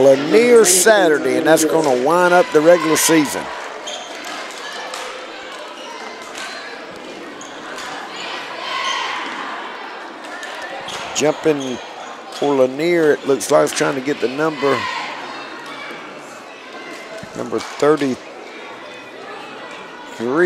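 A crowd cheers and claps in a large echoing gym.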